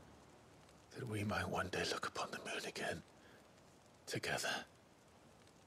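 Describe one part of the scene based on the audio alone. A man speaks softly and tenderly.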